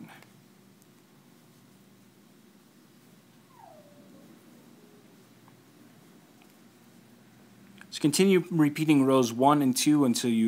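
Knitting needles click softly together.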